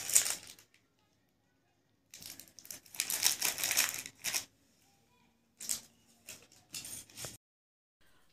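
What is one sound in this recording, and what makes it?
Plastic packets rustle and crinkle as they are handled.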